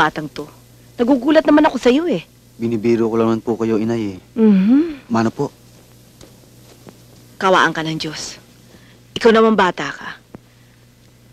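A middle-aged woman speaks with emotion.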